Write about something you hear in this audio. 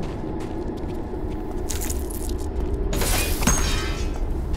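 Magic spells burst with sharp whooshing crackles.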